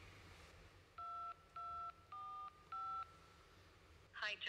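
Phone keypad tones beep several times.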